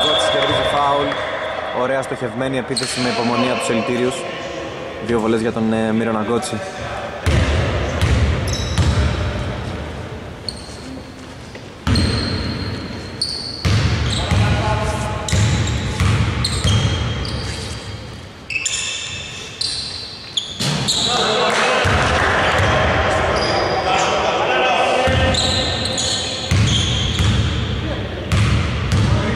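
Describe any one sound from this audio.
Men shout and call out to each other across an echoing gym.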